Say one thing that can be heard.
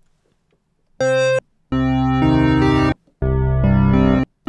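A synthesizer plays loud, bright sustained notes.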